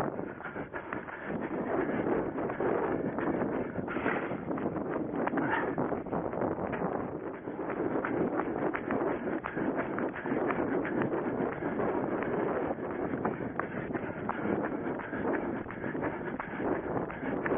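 Wind rushes loudly over a microphone outdoors.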